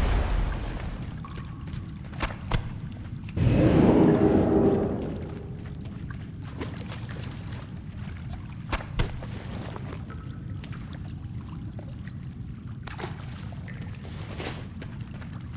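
Footsteps patter quickly over soft ground.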